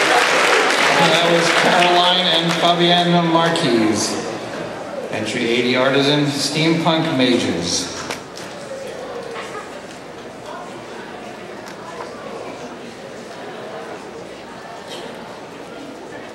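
A man speaks loudly through a microphone in a large hall.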